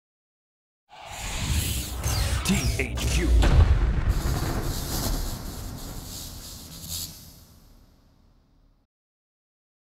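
A sweeping whoosh swells with a deep rumble, then slowly fades.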